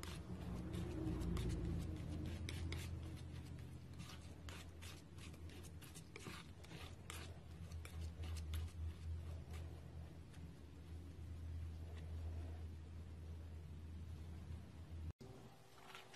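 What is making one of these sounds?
A palette knife spreads and scrapes thick paint.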